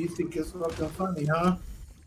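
A pickaxe strikes and chips at rock.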